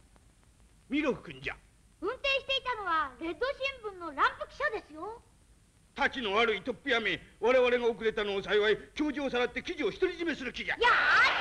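An elderly man speaks excitedly and angrily.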